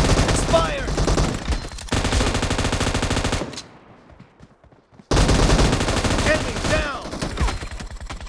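Rapid gunfire rattles in short loud bursts.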